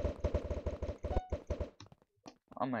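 Game snowballs are thrown in a rapid burst of popping shots.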